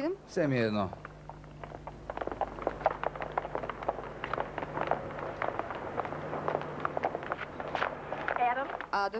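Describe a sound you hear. Footsteps click on stone steps.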